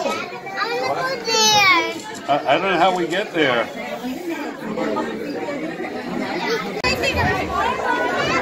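A toddler squeals and babbles excitedly close by.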